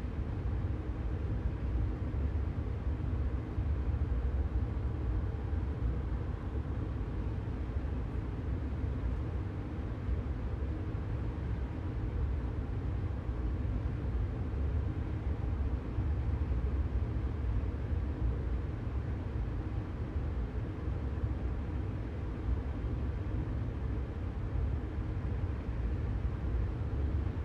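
Train wheels rumble over the track.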